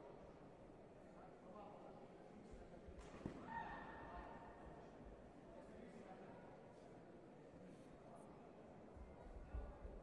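Spectators murmur in a large echoing hall.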